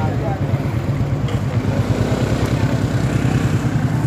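A scooter engine hums nearby.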